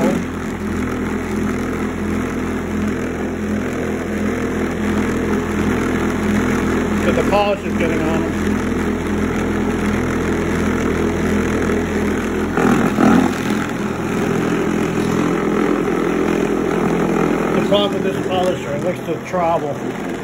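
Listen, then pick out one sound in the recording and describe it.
A motor hums steadily.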